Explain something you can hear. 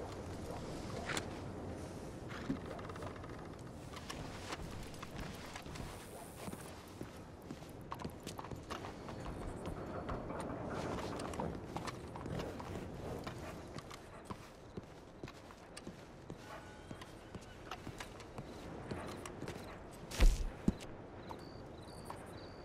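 Boots step on hard stone pavement.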